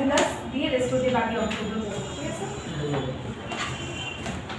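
A young woman reads aloud from a paper.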